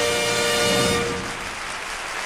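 A woman sings loudly into a microphone, holding a final note.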